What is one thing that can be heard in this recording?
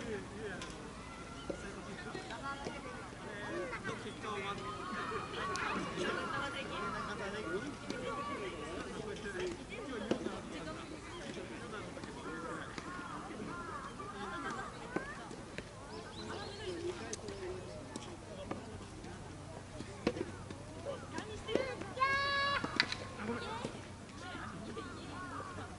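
Tennis balls are struck with sharp pops in the open air.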